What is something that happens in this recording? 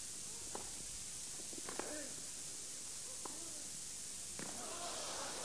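A tennis ball is struck back and forth with rackets.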